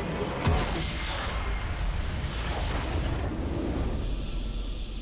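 A loud, booming blast rings out and rumbles away.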